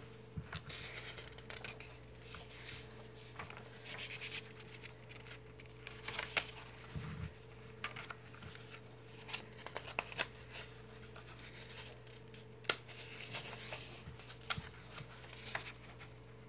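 Paper pages rustle and flip close by.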